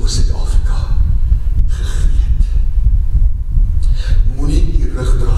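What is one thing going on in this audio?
An elderly man speaks with emphasis into a microphone, heard through loudspeakers in a large room.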